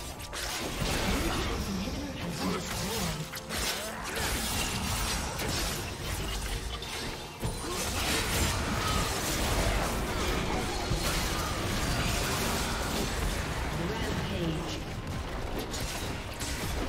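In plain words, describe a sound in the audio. Spell effects and weapon hits clash and crackle in a game fight.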